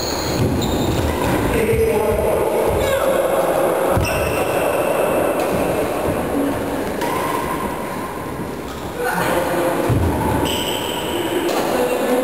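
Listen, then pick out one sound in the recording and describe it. Adult players talk to each other across the net in an echoing hall.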